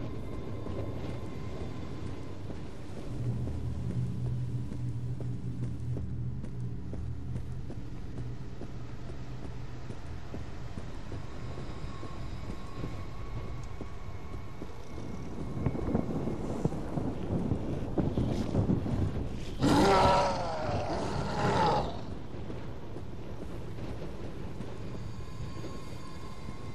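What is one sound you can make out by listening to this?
Footsteps tread steadily on stone paving.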